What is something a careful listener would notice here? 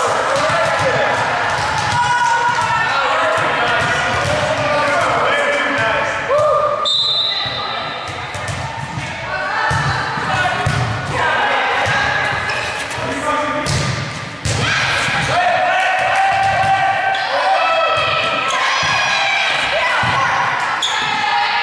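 Young women call out to each other in an echoing gym.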